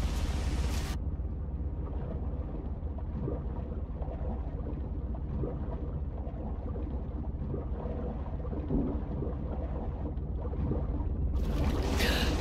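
Muffled underwater bubbling and rumbling.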